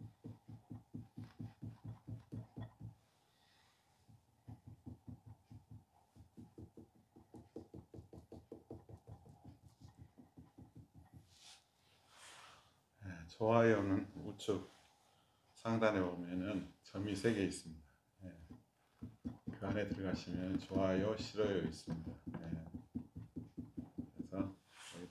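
A hand pats and slaps soft clay in a quick, steady rhythm.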